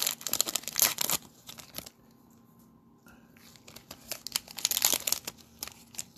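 Plastic wrapping crinkles and rustles as a pack is torn open.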